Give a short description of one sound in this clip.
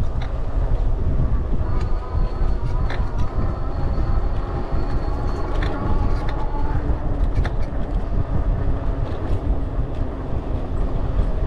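A motorcycle engine hums steadily at low speed.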